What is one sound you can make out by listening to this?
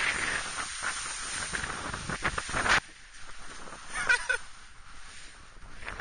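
A snowboard scrapes and hisses over snow.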